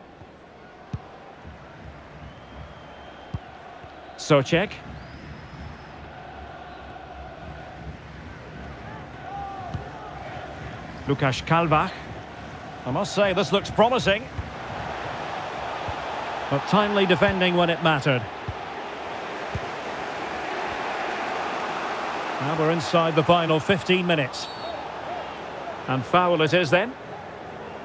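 A large stadium crowd murmurs and roars, swelling louder over time.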